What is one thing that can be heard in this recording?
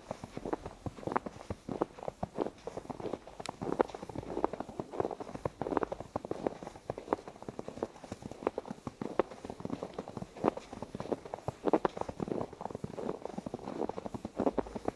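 Footsteps crunch steadily through fresh snow.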